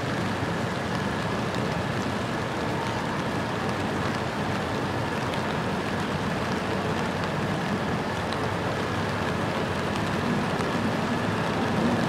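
City traffic hums and rumbles steadily nearby.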